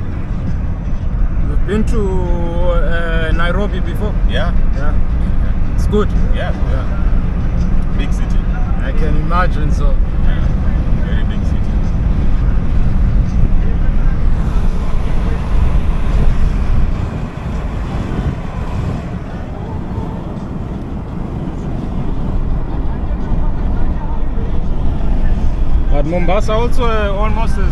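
A car engine hums steadily with road rumble from inside a moving car.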